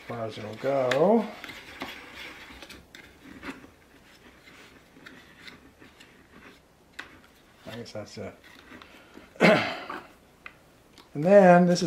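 Plastic parts click and knock as hands fit them together.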